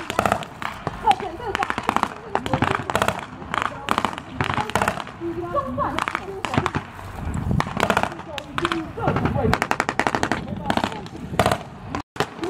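Rifles fire in rapid bursts of blank shots.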